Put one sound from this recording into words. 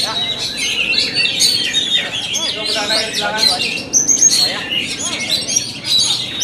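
A songbird sings loud, rapid whistles and trills close by.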